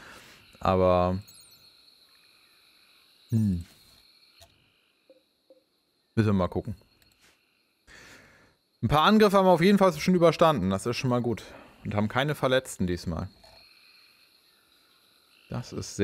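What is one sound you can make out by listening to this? A man talks casually into a close microphone, in short bursts with pauses.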